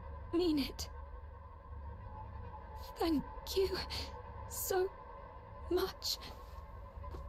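A young woman speaks softly and weakly, in short breathy phrases.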